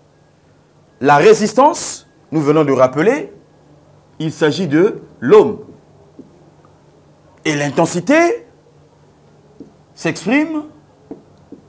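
A man speaks calmly and clearly, as if lecturing, close by.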